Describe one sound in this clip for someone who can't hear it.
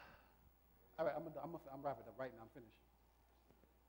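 A man speaks with emphasis through a microphone.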